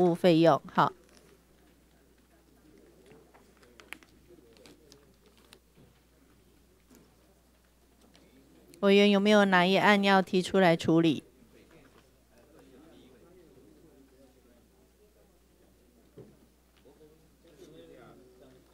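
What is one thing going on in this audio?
People murmur and chat quietly in the background.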